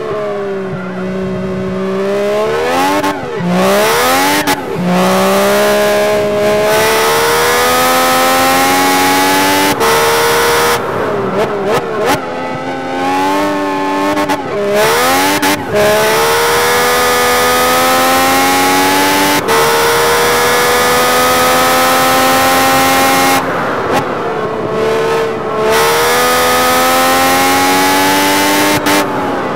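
A racing car engine screams, revving high as it shifts up through the gears and drops when braking.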